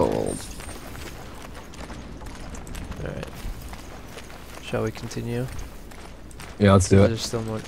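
Heavy footsteps tread on dirt.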